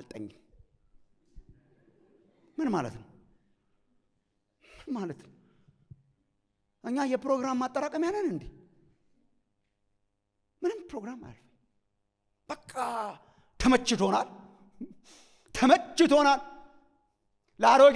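A middle-aged man speaks with animation through a microphone, in short bursts with pauses, in an echoing hall.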